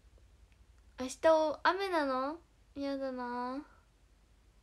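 A young woman speaks close to the microphone in a sing-song, animated voice.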